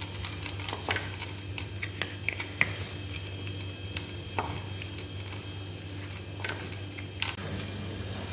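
Cats crunch on dry food with small clicks.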